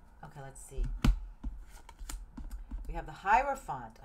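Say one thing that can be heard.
Playing cards tap and slide on a wooden table.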